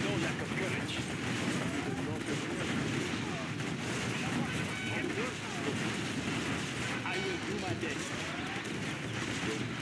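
Rapid gunfire rattles in a battle.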